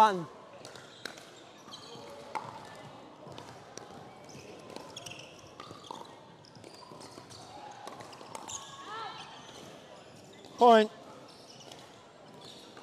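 Paddles strike a plastic ball with sharp pops in a large echoing hall.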